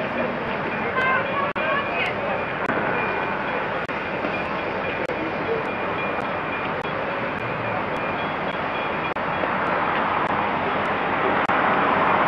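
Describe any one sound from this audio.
A steam locomotive hisses loudly.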